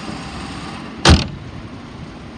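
A car hood slams shut with a loud thud.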